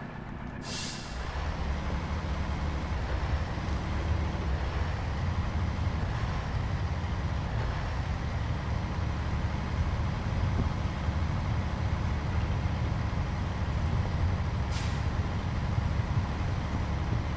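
Truck tyres rumble over a rough road.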